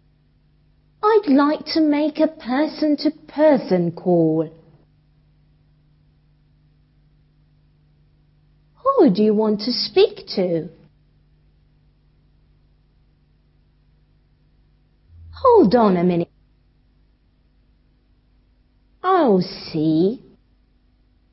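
A young woman speaks calmly and clearly into a microphone, in short phrases with pauses.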